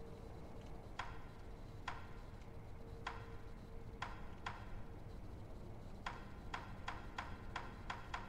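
Short pitched ticks sound as a game menu is scrolled, quicker toward the end.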